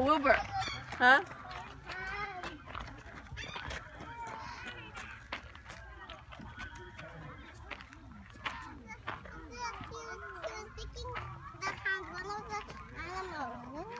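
Children talk and chatter excitedly nearby.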